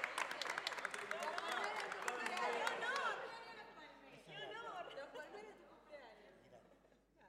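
Men and women nearby cheer and call out over the applause.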